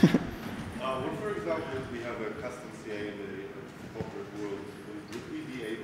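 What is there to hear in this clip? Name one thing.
A young man speaks calmly through a microphone in a large hall.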